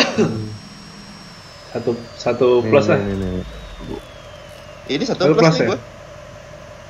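A young man talks with animation into a close headset microphone.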